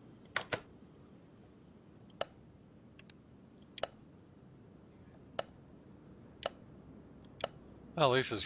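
Short interface clicks sound as menu items are selected.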